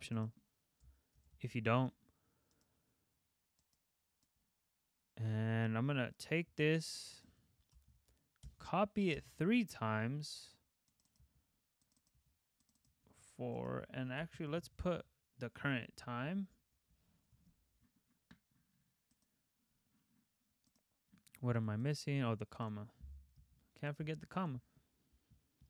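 A young man talks calmly into a close microphone, in short bursts with pauses.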